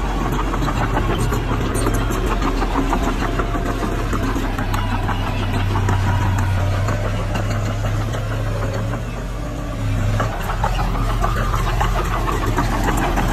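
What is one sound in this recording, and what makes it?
A bulldozer engine rumbles steadily close by.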